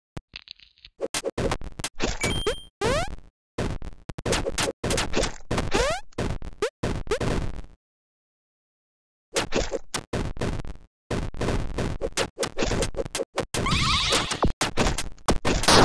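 Video game sound effects of blows and hits come in quick bursts.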